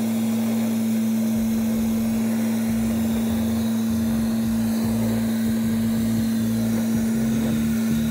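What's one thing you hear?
A high-pressure water jet hisses and splashes.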